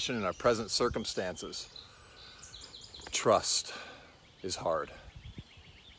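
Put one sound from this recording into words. A middle-aged man talks with animation close to the microphone, outdoors.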